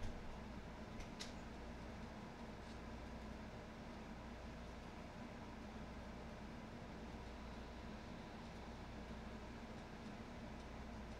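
Soft menu clicks sound as a selection moves.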